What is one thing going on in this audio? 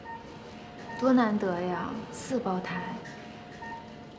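A young woman speaks softly with concern.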